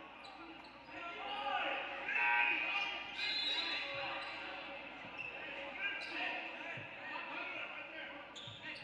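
Sneakers squeak sharply on a hardwood floor in an echoing hall.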